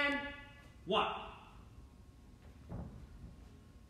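Hands and feet thump softly on a floor mat.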